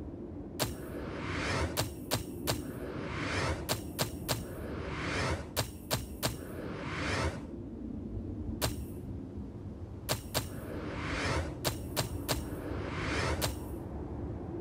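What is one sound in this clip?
A metallic hammering chime rings out after each confirmation.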